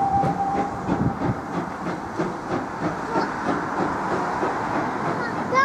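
Train wheels clatter over the rail joints and points.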